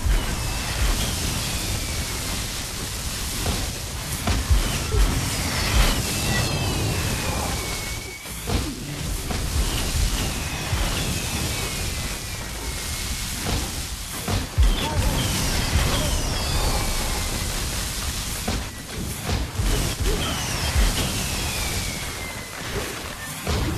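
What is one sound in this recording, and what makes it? Heavy hits thud and boom.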